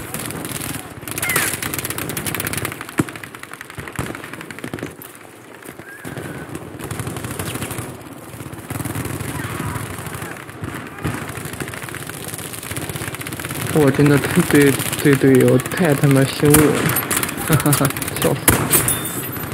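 A rifle fires single sharp, loud shots.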